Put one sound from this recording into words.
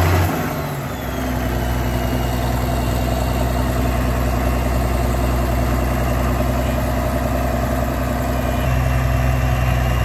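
A turbocharged diesel farm tractor engine runs at low revs.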